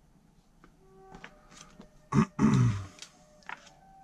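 Paper pages rustle as a magazine page is turned.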